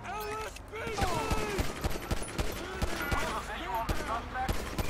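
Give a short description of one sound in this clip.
A pistol fires shot after shot in quick bursts.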